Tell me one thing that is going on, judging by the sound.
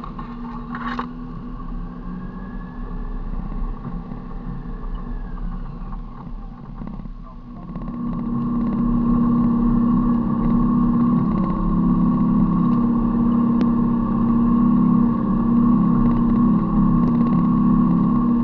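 A vehicle engine rumbles steadily along a rough dirt track, growing louder partway through.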